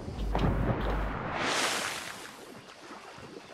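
Water splashes loudly as a body dives in.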